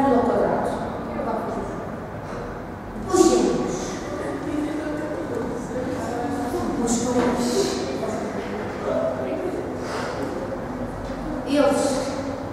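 Young people speak and call out in a small echoing room.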